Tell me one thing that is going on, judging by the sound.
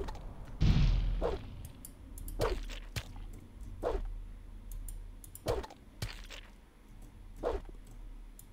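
A sword swishes through the air in repeated swings.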